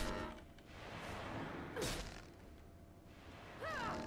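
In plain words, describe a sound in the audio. Blows land in a fight with a large creature.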